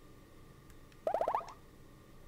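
A video game plays a quick rising run of chiming notes.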